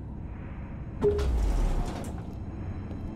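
Elevator doors slide open with a whoosh.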